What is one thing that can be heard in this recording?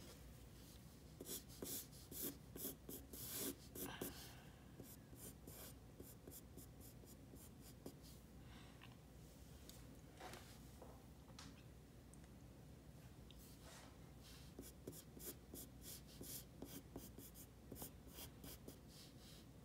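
A pencil scratches and sketches on paper.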